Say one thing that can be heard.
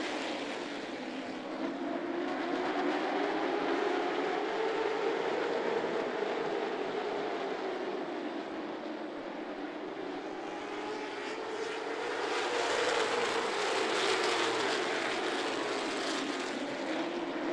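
Many race car engines roar loudly as a pack of cars speeds around a track, their pitch rising and falling.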